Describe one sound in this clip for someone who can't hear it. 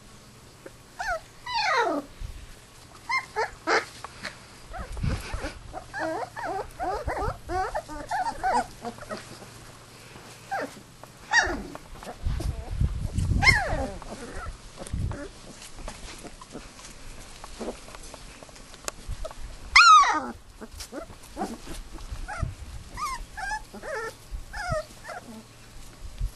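Puppies whimper and yelp in high, sliding cries.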